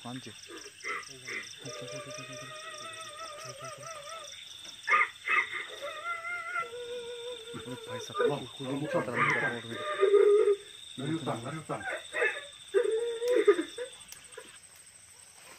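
A man talks in a low voice nearby.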